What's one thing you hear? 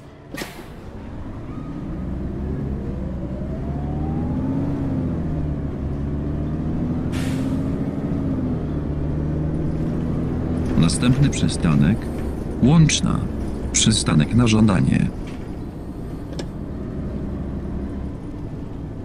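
A bus engine revs up and hums steadily as the bus drives along.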